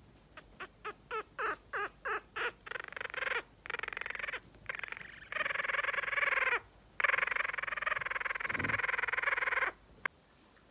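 A tiny puppy whimpers and squeals in high, repeated cries close by.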